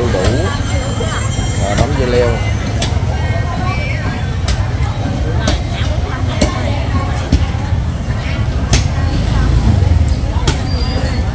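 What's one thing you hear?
Many voices chatter in a busy outdoor market.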